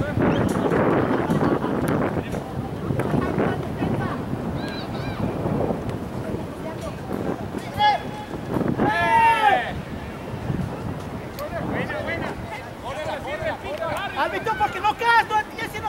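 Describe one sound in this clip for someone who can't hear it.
Young male players shout to each other across an open field.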